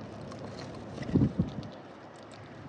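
A dove's wings flap loudly as it takes off close by.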